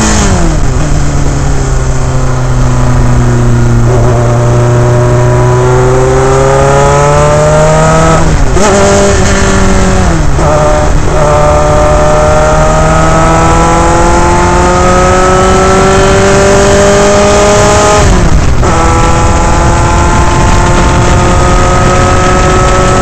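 A racing car engine roars loudly up close, its pitch climbing through each gear and dropping at each gear change.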